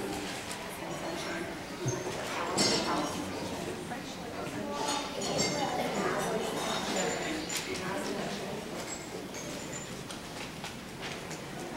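Children and adults chatter throughout a large echoing hall.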